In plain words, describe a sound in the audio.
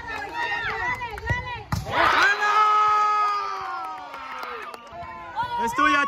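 A crowd of children shouts and cheers outdoors.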